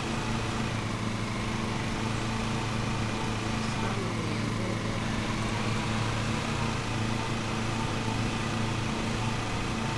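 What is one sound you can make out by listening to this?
A riding lawn mower engine drones steadily.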